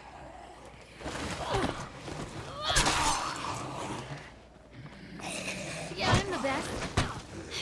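Blows land with heavy thuds in a scuffle.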